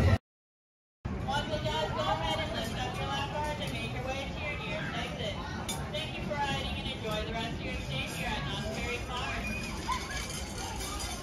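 A spinning swing ride whirs steadily.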